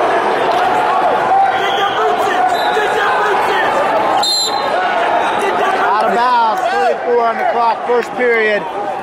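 A crowd murmurs and shouts throughout a large echoing hall.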